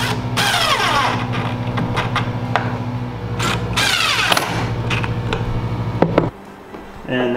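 An impact driver whirs and hammers as it drives screws.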